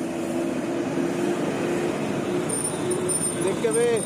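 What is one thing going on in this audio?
An auto-rickshaw engine putters nearby.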